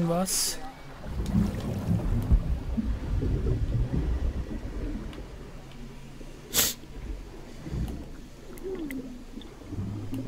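Water rumbles and bubbles, muffled, as if underwater.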